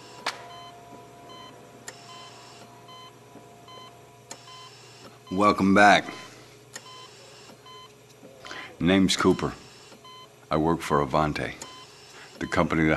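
A medical monitor beeps at a steady pace.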